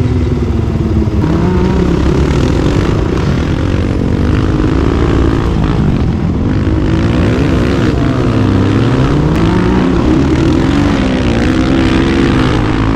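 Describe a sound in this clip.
A quad bike engine roars and revs up and down close by.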